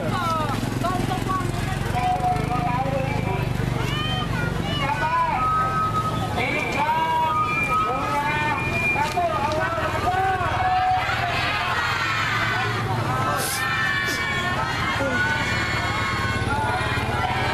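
A crowd of children and adults chatters and shouts outdoors.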